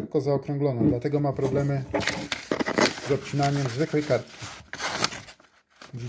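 A knife blade slices through paper with a crisp rustle.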